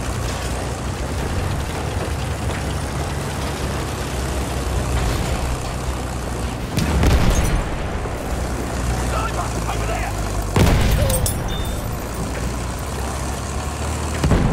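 A heavy tank engine rumbles and clanks steadily.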